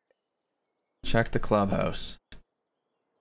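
A man speaks briefly into a microphone, close and with animation.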